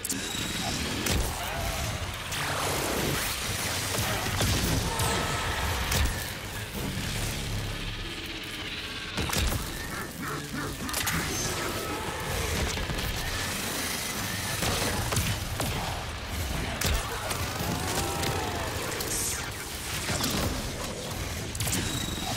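An energy weapon crackles and zaps with electric bursts.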